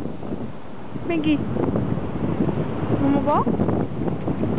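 A dog yelps briefly.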